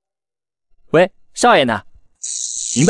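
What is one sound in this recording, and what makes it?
A young man speaks cheerfully on a phone.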